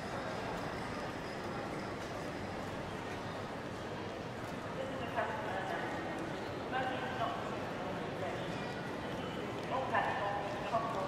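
A crowd murmurs and echoes in a large, echoing hall.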